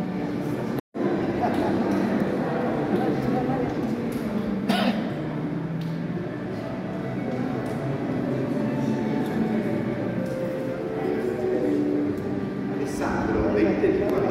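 A crowd of guests murmurs and chatters.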